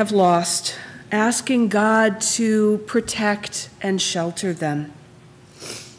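A woman speaks calmly into a microphone in a large echoing hall.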